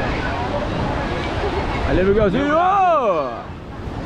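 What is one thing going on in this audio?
Small waves splash on the shore.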